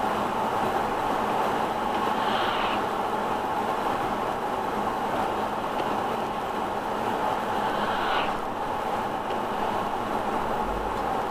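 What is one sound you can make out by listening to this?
A car drives steadily along a wet road, its tyres hissing on the asphalt.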